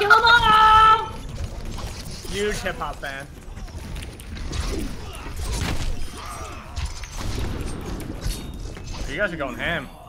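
Rapid gunfire rattles in a video game.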